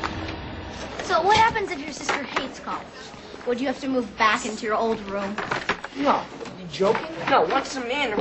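Young people chatter in a busy room.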